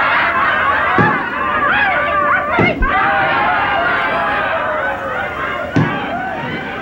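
Fireworks burst with loud booms.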